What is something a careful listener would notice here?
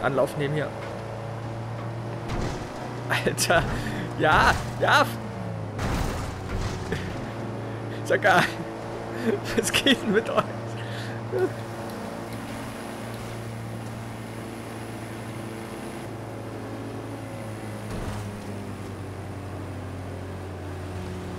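An old van engine hums steadily as it drives.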